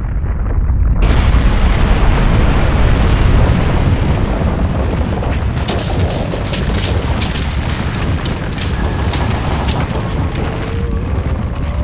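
A deep rumble swells and roars as a huge blast erupts.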